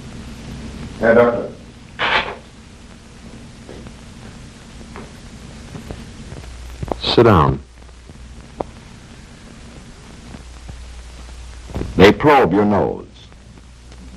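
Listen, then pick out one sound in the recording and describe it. A man speaks in short, brisk bursts.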